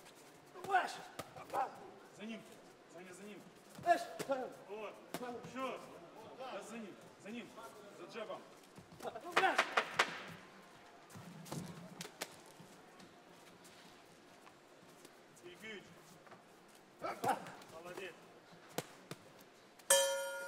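Boxing gloves thud against bodies in quick punches.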